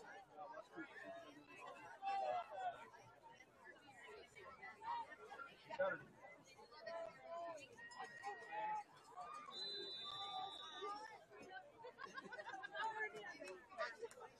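A crowd of players and spectators chatters and shouts outdoors at a distance.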